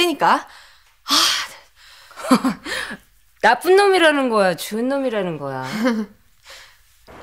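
A second young woman answers.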